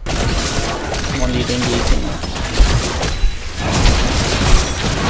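Game combat effects clash and burst in quick succession.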